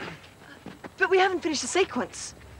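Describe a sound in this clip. A young woman speaks sharply and angrily up close.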